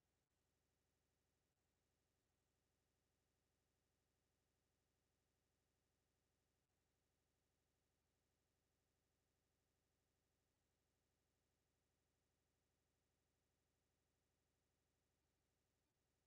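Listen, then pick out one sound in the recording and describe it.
A clock ticks steadily and softly.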